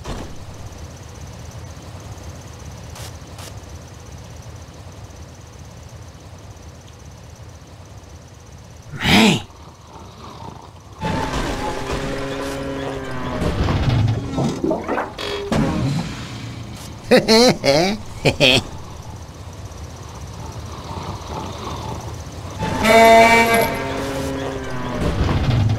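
A cartoon tow truck engine rumbles steadily.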